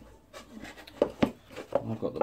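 A wooden box knocks against a table as it is handled.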